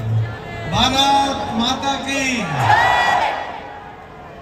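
A large crowd cheers and chants.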